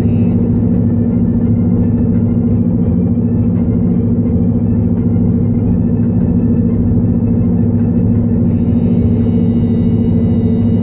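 A car engine hums steadily from inside as it drives along a highway.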